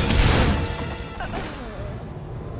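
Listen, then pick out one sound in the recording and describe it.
A heavy blow strikes a large beast.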